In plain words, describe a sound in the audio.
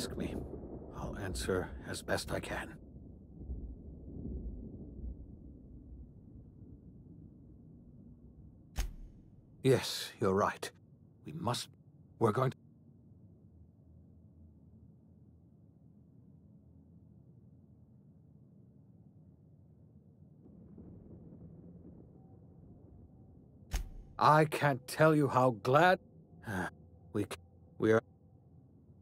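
A middle-aged man speaks calmly and earnestly, close by.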